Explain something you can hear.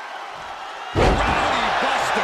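A body slams hard onto a wrestling mat with a heavy thud.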